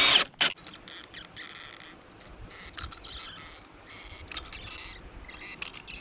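A caulking gun clicks as its trigger is squeezed.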